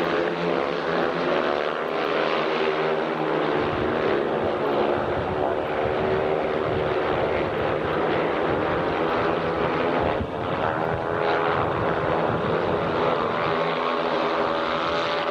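Motorcycle engines roar loudly as they race past.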